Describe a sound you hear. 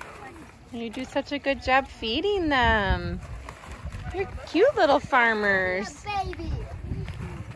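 Goats bleat loudly with a wavering cry.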